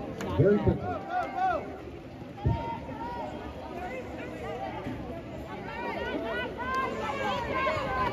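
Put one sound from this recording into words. Water splashes as swimmers play in a pool.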